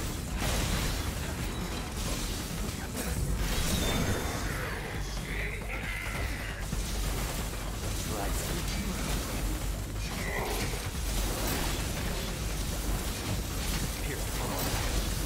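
Game battle sounds of slashing, crackling lightning and impacts ring out.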